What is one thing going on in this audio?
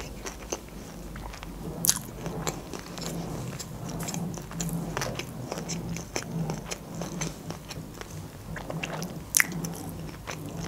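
A young woman chews food with wet, crunchy mouth sounds close to a microphone.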